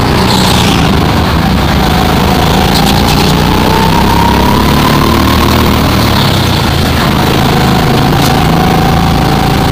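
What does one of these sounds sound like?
A go-kart engine drones at speed around a track.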